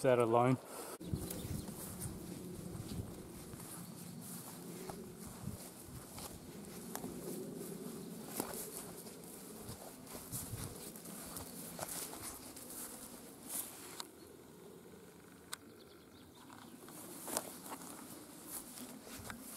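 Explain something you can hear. Footsteps swish through long grass.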